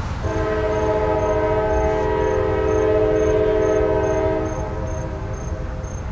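A freight train rumbles past.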